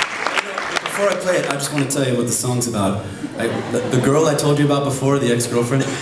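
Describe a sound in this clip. A man sings into a microphone on stage.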